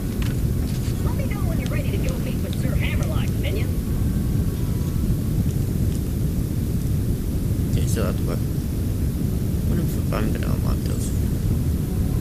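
A young man speaks casually through a microphone.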